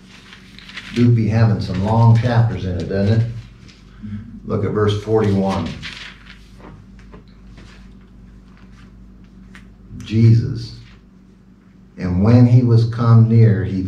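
A middle-aged man speaks calmly into a microphone, in bursts with pauses.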